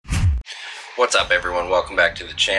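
A man talks close to a microphone with animation.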